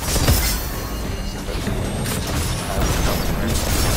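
A blast explodes with a deep boom.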